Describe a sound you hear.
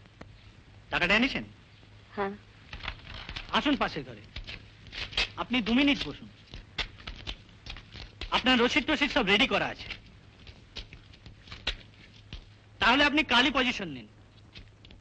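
A woman speaks quietly, close by.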